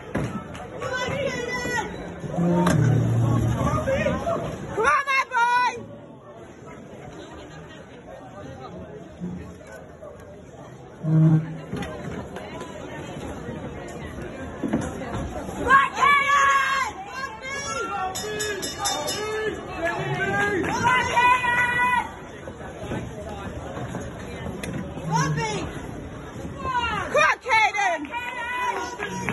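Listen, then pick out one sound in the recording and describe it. Men shout loudly and excitedly from close by.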